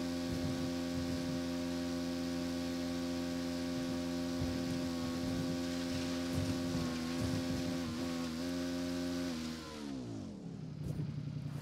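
A motorbike engine drones steadily, then winds down and dies away.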